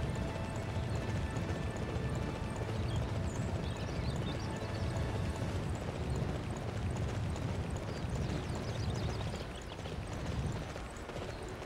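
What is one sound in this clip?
A horse gallops with heavy hoofbeats on dry ground.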